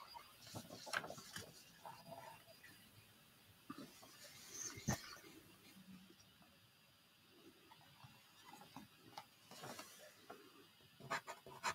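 A dry pastel stick scrapes on paper.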